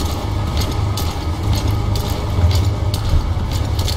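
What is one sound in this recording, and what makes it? Grass rustles as a man crawls through it.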